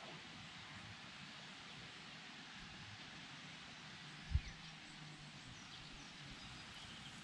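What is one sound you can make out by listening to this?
A light breeze rustles leaves outdoors.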